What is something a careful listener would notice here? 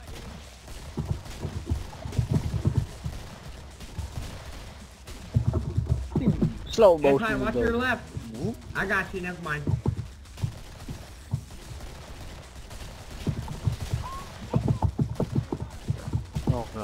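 A pistol fires repeated shots.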